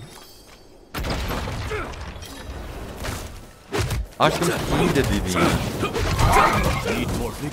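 Game combat sounds clash and boom through speakers.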